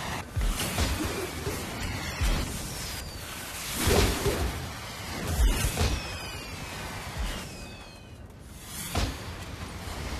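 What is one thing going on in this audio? Game combat impacts thud repeatedly.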